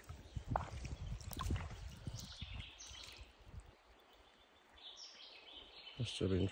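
Shallow water trickles softly over stones.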